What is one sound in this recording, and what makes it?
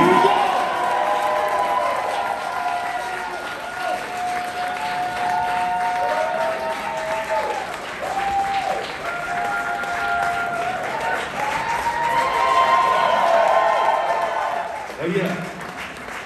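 Live music plays loudly in a large echoing hall.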